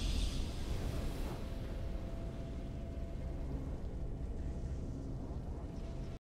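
A triumphant game victory fanfare plays.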